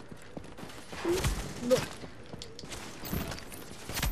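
A gun fires a few loud shots.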